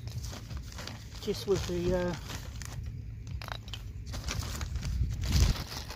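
Pieces of wood knock together as they drop onto the grass.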